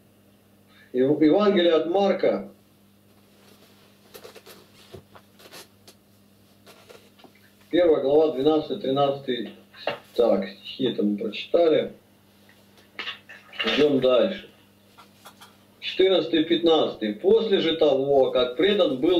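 A middle-aged man speaks calmly over an online call, heard through a computer speaker.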